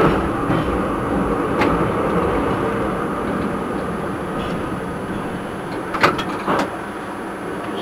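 A tram rumbles along rails and slows to a stop.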